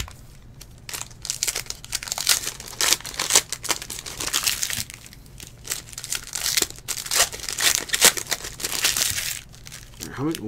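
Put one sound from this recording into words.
Foil card packs rip open with a crackle.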